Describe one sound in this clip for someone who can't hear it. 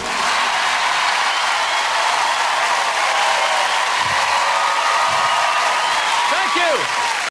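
A large audience claps and cheers loudly.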